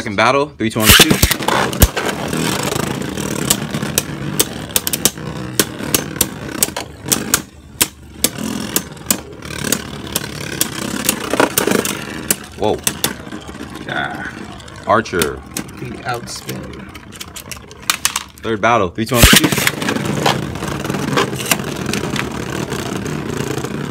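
Spinning tops whir and clack against each other in a plastic arena.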